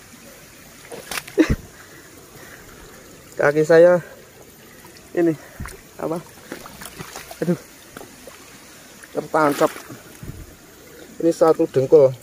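Boots squelch and splash through wet mud.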